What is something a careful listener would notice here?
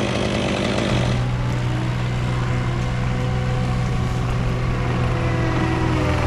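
A skid steer loader's engine rumbles steadily nearby.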